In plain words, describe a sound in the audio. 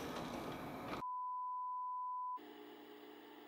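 A steady test tone beeps.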